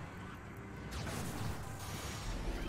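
An energy weapon fires a sharp shot.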